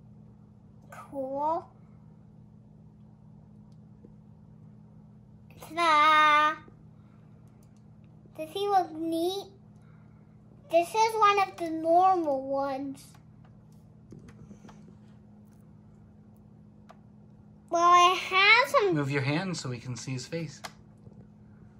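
A young boy talks with animation close by, in short high-pitched bursts.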